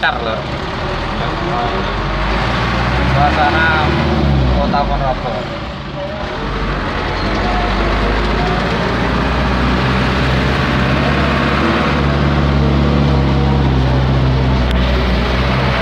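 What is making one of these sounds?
A vehicle engine hums steadily from close by.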